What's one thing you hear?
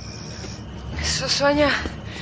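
A woman calls out loudly.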